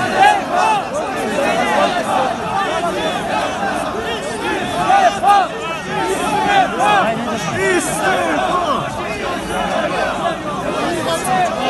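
A large crowd of men talks and shouts all at once close by, outdoors.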